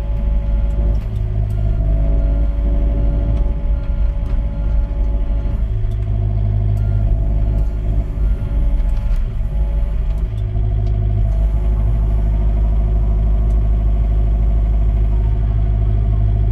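A mini excavator's hydraulics whine as it moves.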